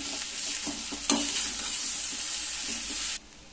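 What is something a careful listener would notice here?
A spatula scrapes and stirs food in a metal pan.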